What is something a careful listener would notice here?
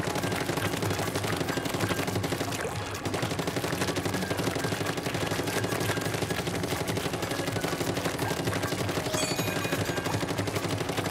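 Paint sprays and splatters in quick bursts.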